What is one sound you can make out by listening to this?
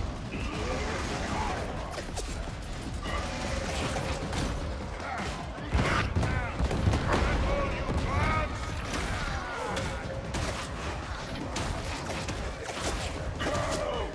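Guns fire rapidly in bursts.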